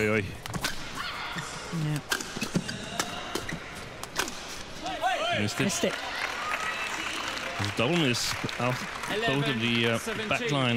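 A crowd in a large hall claps and cheers.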